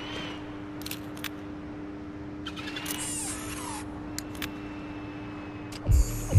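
A small toy car's electric motor whirs steadily.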